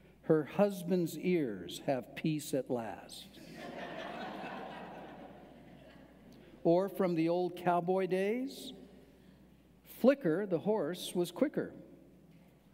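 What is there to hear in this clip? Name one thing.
An elderly man speaks calmly and clearly into a microphone, pausing between phrases.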